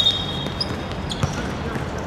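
Sneakers squeak briefly on a hard court.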